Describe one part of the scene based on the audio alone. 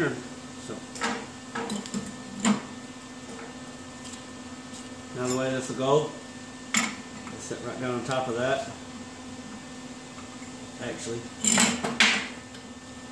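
Metal parts clink and knock against each other.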